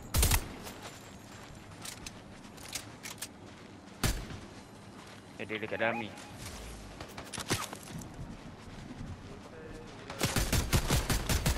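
Footsteps crunch through snow.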